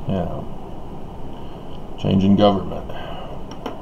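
A middle-aged man speaks briefly and quietly, close by.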